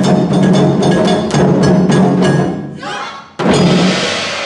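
Many large drums pound together in a fast, heavy rhythm in an echoing hall.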